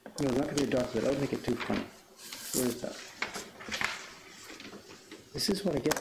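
Paper rustles as sheets are shuffled.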